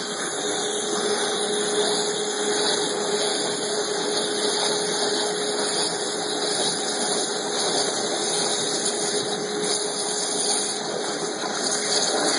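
A high-pressure water jet hisses and roars steadily.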